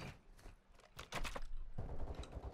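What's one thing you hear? A locked door rattles as it is tried.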